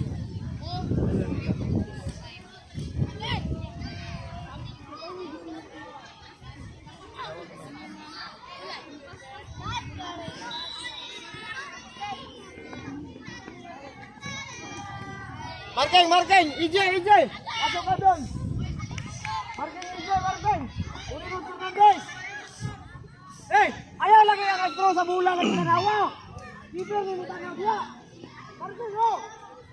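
Children shout and call out in the distance outdoors.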